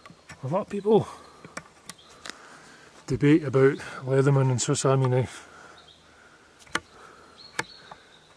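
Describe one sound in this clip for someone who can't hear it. A knife blade scrapes and shaves wood in short strokes.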